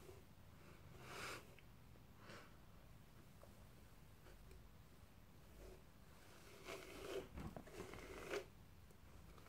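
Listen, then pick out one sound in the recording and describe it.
A brush rustles through long hair.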